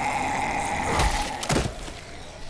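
A boot kicks a body with a heavy thud.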